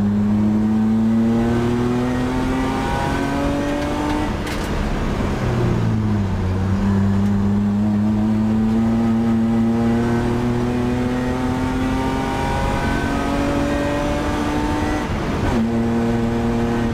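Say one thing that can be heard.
A race car engine roars loudly from inside the cabin, rising in pitch as it accelerates and dropping with each gear change.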